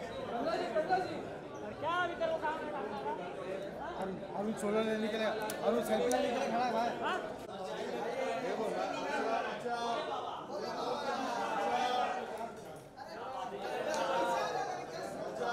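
A crowd of men talk and shout loudly close by.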